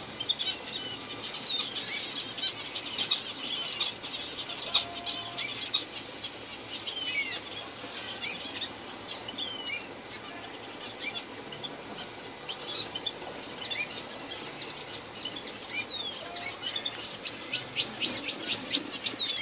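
Small birds chirp and twitter rapidly nearby.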